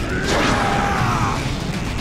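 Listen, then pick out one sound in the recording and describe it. A man roars fiercely, close up.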